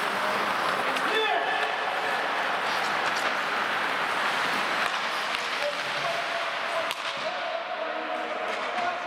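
Skates scrape and hiss across the ice in a large echoing rink.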